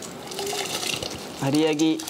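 Wet rice tips into water with a splash.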